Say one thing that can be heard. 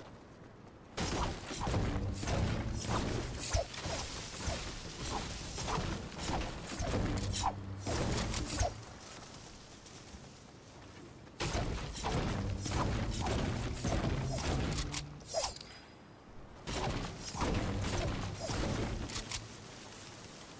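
A pickaxe strikes wood again and again with sharp thuds.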